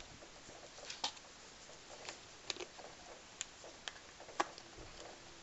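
Plastic bottle parts click and clack as they are handled.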